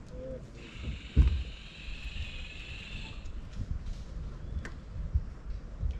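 A small boat glides slowly through calm water.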